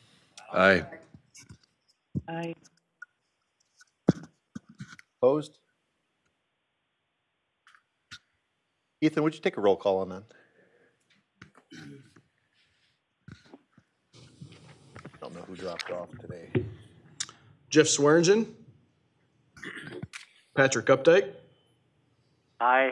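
Men speak in turn through microphones in a large room, with pauses between them.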